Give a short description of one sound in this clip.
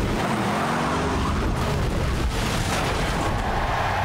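A crashed car crunches and scrapes over the ground.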